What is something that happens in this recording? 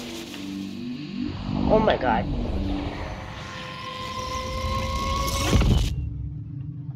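A television hisses with static.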